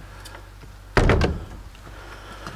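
A wooden door bangs shut.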